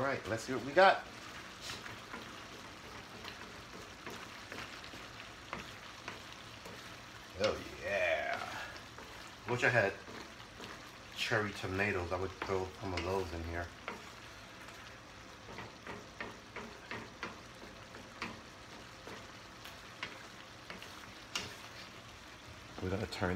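A wooden spoon scrapes and stirs food in a metal pan.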